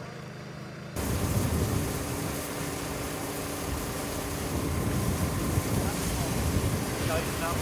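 A hose sprays water onto pavement with a loud hiss.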